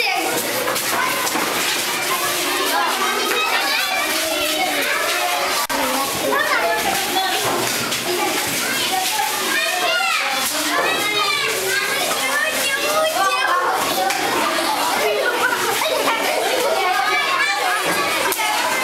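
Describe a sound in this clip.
Many young children chatter and shout excitedly close by in an echoing room.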